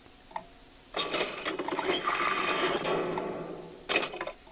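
A mechanical whirring and clanking sound effect plays as a purchase is confirmed.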